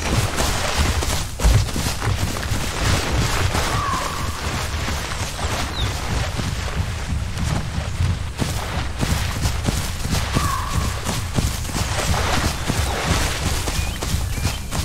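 Heavy footsteps thud and rustle through undergrowth.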